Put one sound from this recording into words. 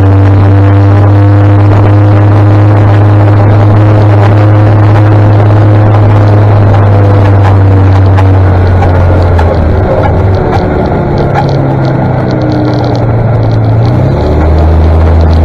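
An engine hums loudly and steadily close by, shifting pitch now and then.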